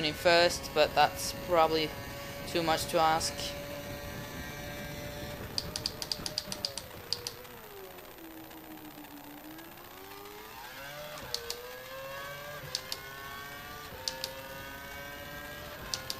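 A racing car engine screams at high revs, dropping in pitch through a corner and rising again as it speeds up.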